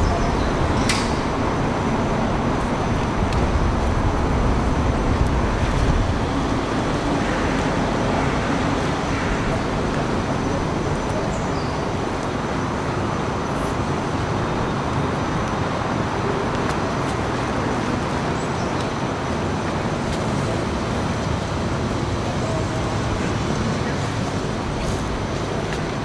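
A violin plays a melody.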